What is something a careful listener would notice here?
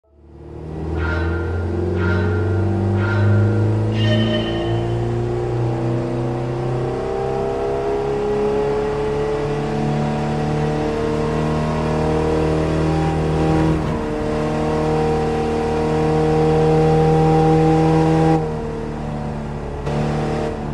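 A car engine roars steadily, rising in pitch as it speeds up and dropping at each gear change.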